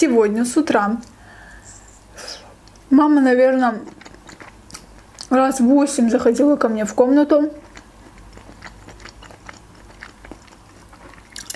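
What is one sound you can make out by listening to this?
A young woman chews food with wet smacking sounds close to a microphone.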